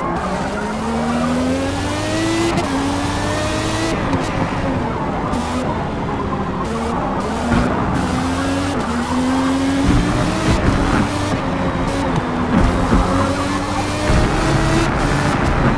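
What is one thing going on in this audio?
A racing car engine whines and rises in pitch through the gears.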